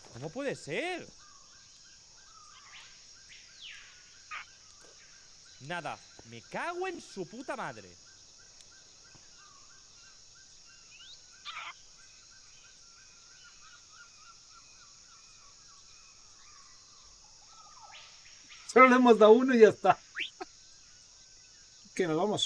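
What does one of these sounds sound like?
A parrot squawks and chatters in bursts.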